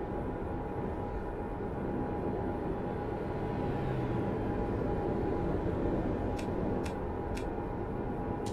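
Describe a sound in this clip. A truck engine drones steadily while driving at speed.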